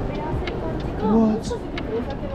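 A woman speaks briefly and politely nearby.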